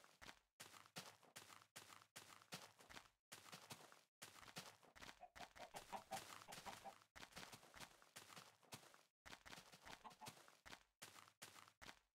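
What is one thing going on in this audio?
Footsteps thud on grass at a steady walking pace.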